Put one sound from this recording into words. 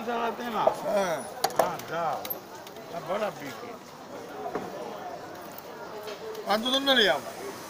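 A knife taps on a cutting board.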